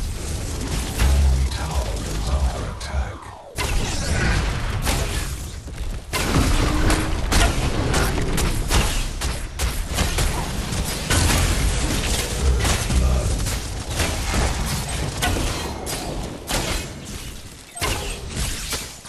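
Heavy booms and thuds rumble through the battle.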